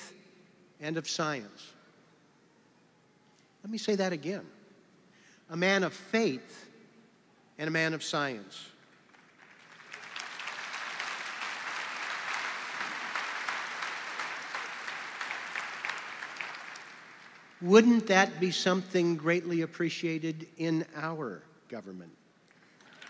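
A middle-aged man speaks with pauses into a microphone, heard over loudspeakers in a large hall.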